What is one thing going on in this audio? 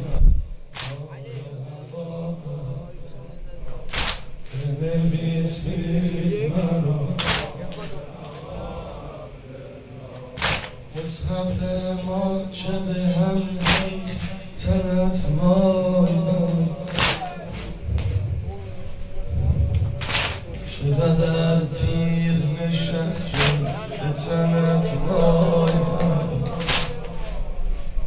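A man chants a mournful lament into a microphone, echoing in a large hall.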